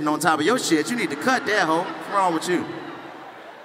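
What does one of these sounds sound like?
A man speaks animatedly into a microphone, heard through loudspeakers in a large hall.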